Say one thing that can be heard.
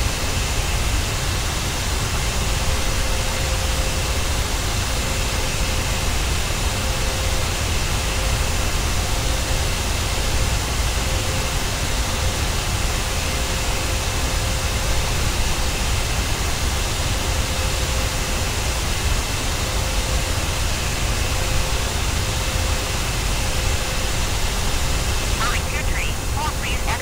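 Jet engines of a twin-engine airliner roar steadily in cruise.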